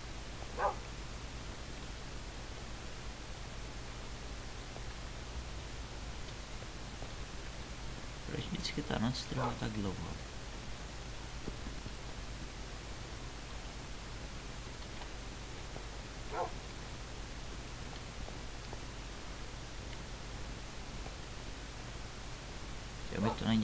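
A wooden door opens and shuts with a knock.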